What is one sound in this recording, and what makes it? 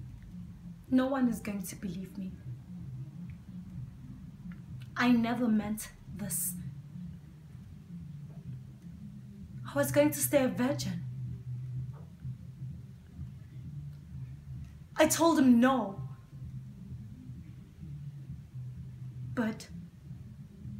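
A young woman speaks close by in short, expressive bursts with pauses between them.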